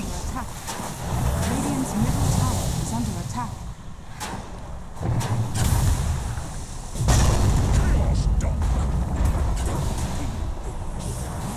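Game spell effects whoosh, crackle and rumble in bursts.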